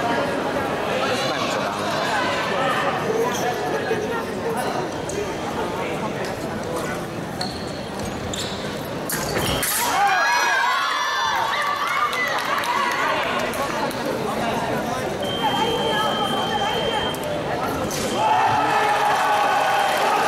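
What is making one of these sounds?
Fencing blades clash and click.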